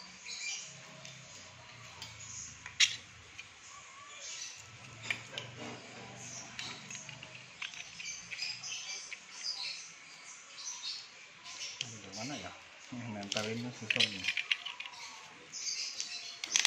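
Small parts click and rattle as they are handled.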